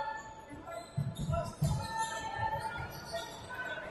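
A basketball bounces on a wooden court in a large echoing hall.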